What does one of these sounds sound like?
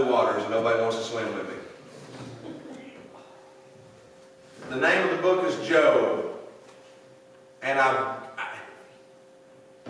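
A middle-aged man preaches with emphasis through a microphone in a large echoing hall.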